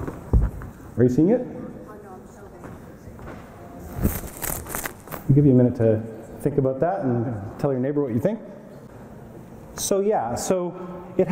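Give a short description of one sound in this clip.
A man lectures calmly through a microphone in a large hall.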